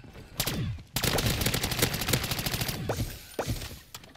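Rapid gunfire rattles and bangs.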